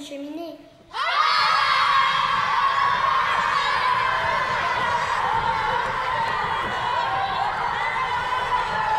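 A crowd of children shouts and screams excitedly.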